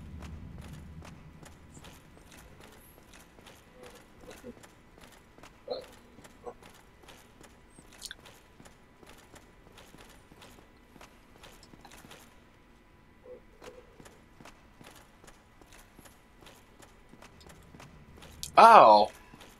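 Armoured footsteps clank steadily on stone steps.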